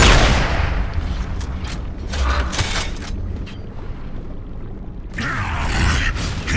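Heavy armoured footsteps thud on stone.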